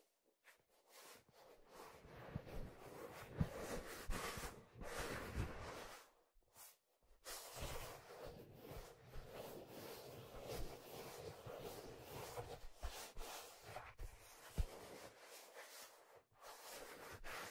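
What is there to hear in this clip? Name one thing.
Fingers rub and tap on a leather drum close to a microphone.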